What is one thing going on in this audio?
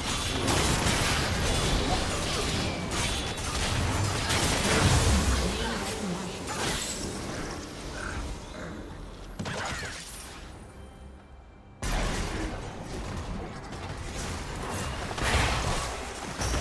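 Spell effects crackle and whoosh during a fight in a video game.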